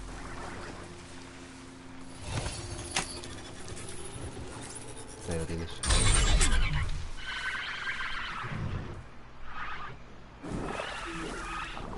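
A metal machine creature growls and clanks.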